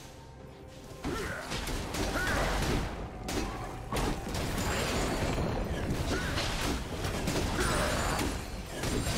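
Magic spells whoosh and crackle in a video game fight.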